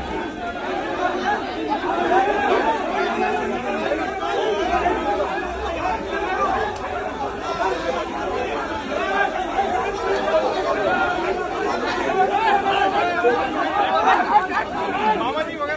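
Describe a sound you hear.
A crowd of men shouts and clamours loudly close by.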